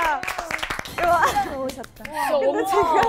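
Young women chatter with animation.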